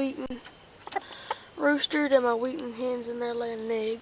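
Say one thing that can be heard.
A chicken clucks nearby.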